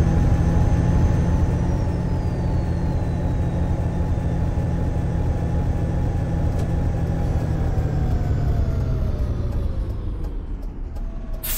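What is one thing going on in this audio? A bus engine hums steadily and winds down as the bus slows to a stop.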